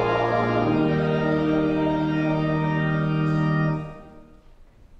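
A pipe organ plays a sustained chord.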